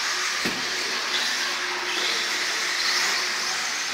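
A small electric model car whines.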